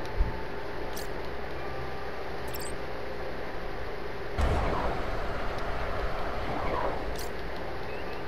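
Short interface beeps chirp as menu options are selected.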